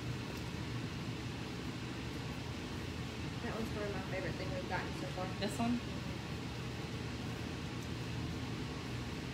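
Fabric rustles as a top is pulled on.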